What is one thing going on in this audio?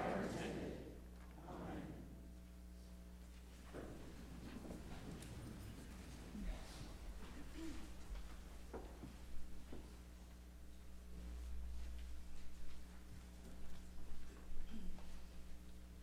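An organ plays soft, steady notes.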